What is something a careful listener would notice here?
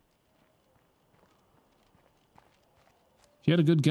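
Footsteps crunch quickly on pavement.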